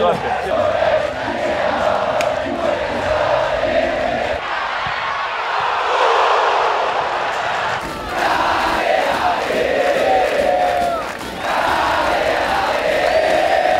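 A large crowd chants and sings loudly outdoors.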